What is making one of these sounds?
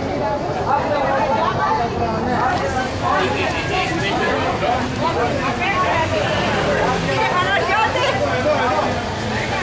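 A crowd of adults chatters loudly close by, outdoors.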